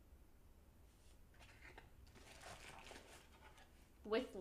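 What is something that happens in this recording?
A paper bag rustles and crinkles close to a microphone.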